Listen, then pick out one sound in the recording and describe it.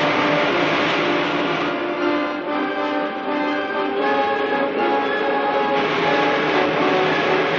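A rocket engine roars as a rocket climbs through the air.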